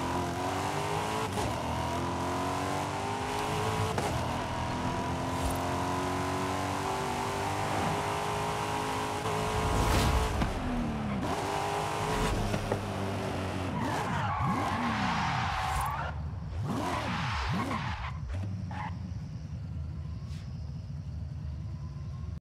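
A sports car engine roars at high revs, shifting up through the gears.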